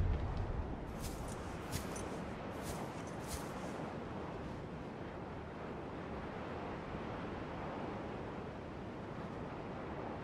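Ocean waves wash steadily nearby.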